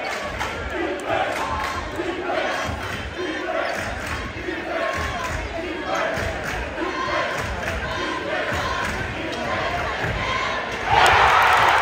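A crowd chants rhythmically in a large echoing gym.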